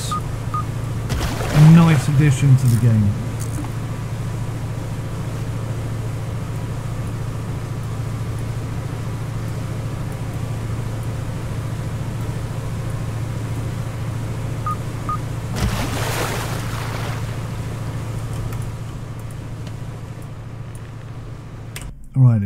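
A boat's outboard engine hums steadily.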